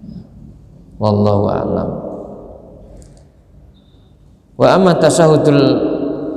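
An elderly man speaks slowly and calmly into a microphone in an echoing room.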